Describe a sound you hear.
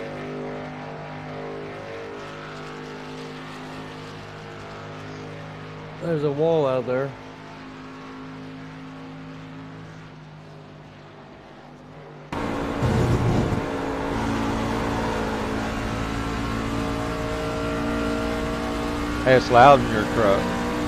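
A race car engine drones steadily, growing louder up close.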